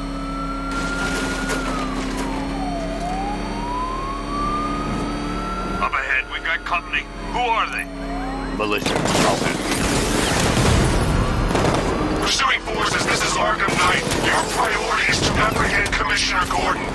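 A powerful car engine roars and hums steadily.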